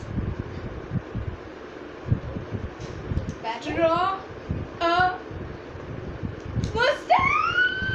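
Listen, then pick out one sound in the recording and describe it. A young girl talks animatedly, close by.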